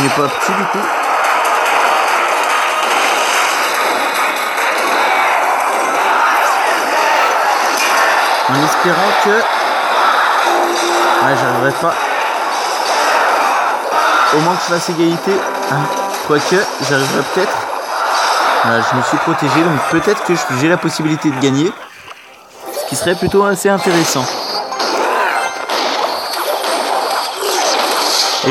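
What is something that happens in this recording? Video game battle sound effects clash and crackle.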